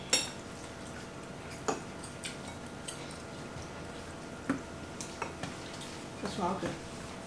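Cutlery clinks and scrapes against plates.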